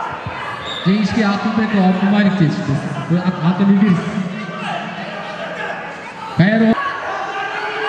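A man speaks loudly over a loudspeaker in a large echoing hall.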